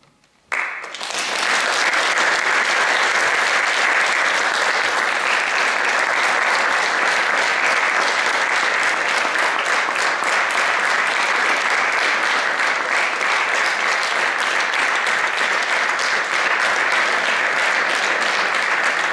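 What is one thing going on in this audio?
An audience applauds loudly in an echoing hall.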